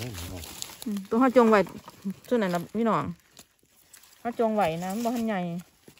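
Dry leaves rustle under a hand.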